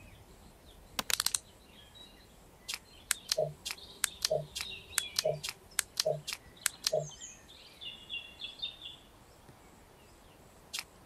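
Game pieces click and chime sharply as they jump and vanish.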